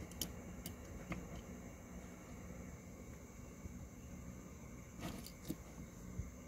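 A small plastic toy truck is set down with a light knock on a hard surface.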